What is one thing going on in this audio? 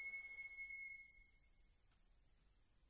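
An ensemble holds a final high note that fades away.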